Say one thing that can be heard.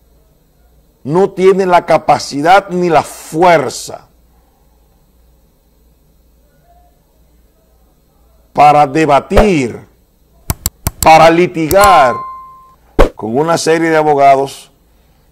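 A man speaks with animation close to a microphone, pausing between phrases.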